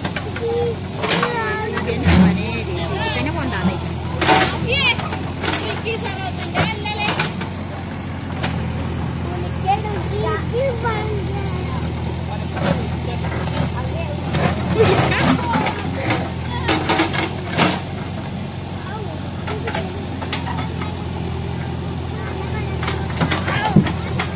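Soil and rocks scrape and thud as a digger bucket scoops earth.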